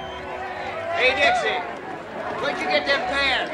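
Many horses whinny and neigh.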